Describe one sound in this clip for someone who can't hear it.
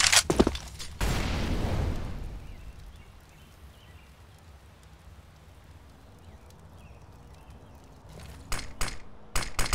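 Footsteps tread lightly on stone.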